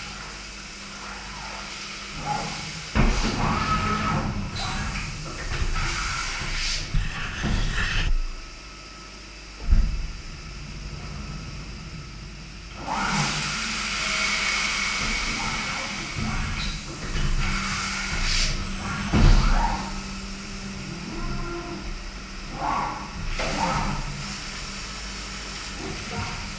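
Coolant sprays and hisses inside a machine.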